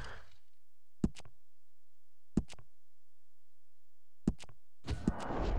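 Short game menu clicks sound, one at a time.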